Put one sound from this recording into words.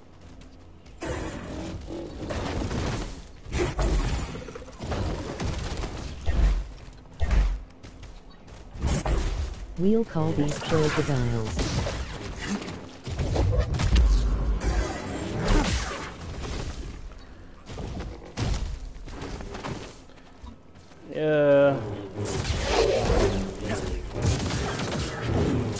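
Large beasts roar and growl.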